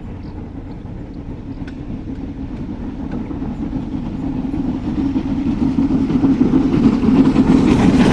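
Train carriages rumble along the rails.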